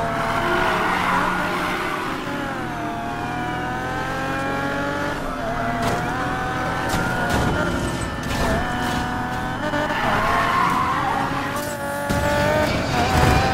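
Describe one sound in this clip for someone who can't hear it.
A racing car engine roars and shifts gears.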